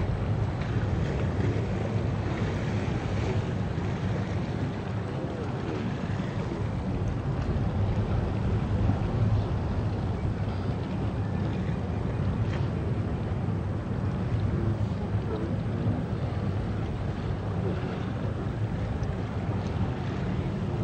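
A river rushes and splashes steadily over rocks nearby.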